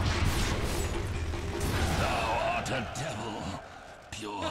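A fiery spell bursts and roars.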